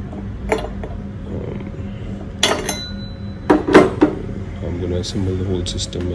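Metal parts knock and clink as a hand sets them down on a hard table.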